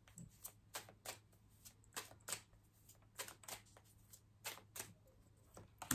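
Cards rustle and snap as they are shuffled.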